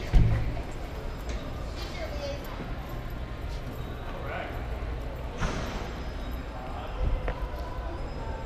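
Footsteps walk on a hard floor in a large echoing hall.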